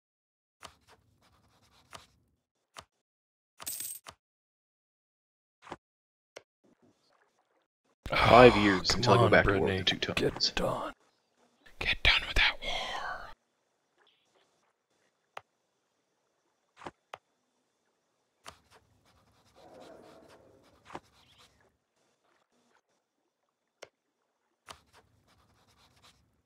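Short game interface clicks sound now and then.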